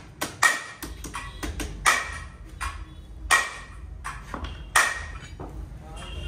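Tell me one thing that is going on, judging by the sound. Metal tools clank and knock sharply against metal.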